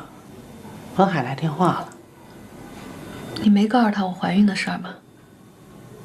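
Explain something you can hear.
A young woman speaks softly close by.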